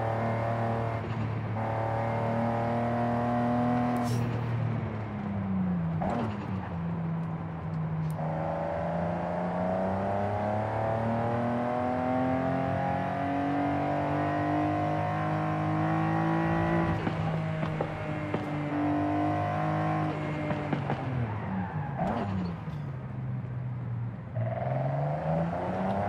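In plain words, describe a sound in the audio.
A car engine roars, revving up and down as gears shift.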